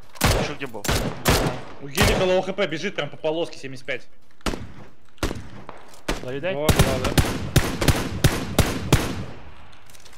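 Rifle shots crack in quick bursts.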